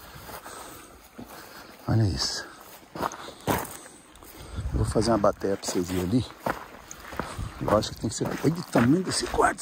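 Footsteps crunch on sandy gravel.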